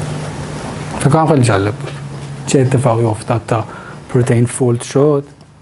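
A young man speaks clearly.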